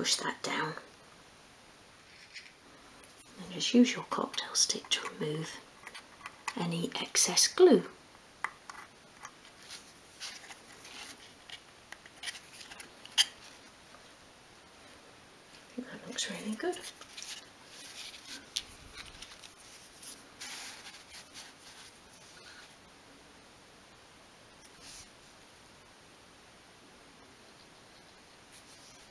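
Small wooden pieces click and tap as they are handled.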